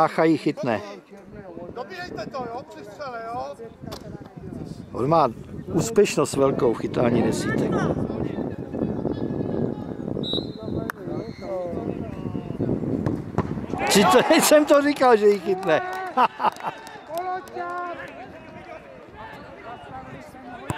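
Men on the field and at the sidelines shout and call out outdoors.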